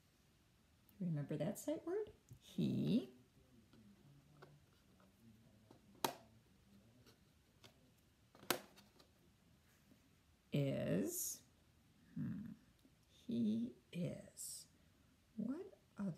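A woman speaks calmly and slowly, close by.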